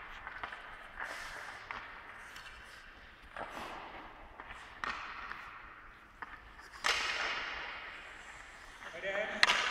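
A hockey stick slaps a puck on ice, echoing through a large indoor rink.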